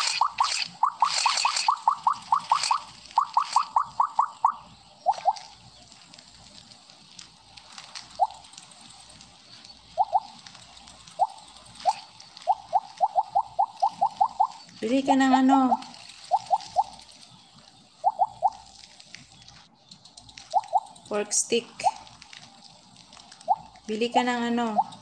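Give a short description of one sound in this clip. Quick, high electronic blips ring out in rapid bursts as a game's snake eats.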